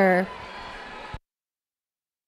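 A crowd of spectators cheers in a large echoing hall.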